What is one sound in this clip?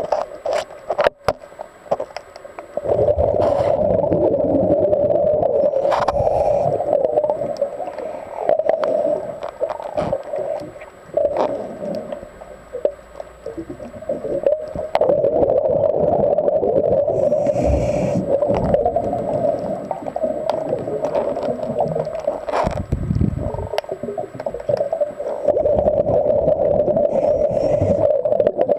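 Water rushes and rumbles close around an underwater microphone.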